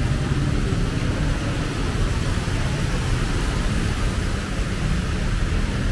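A car drives through deep floodwater, splashing loudly.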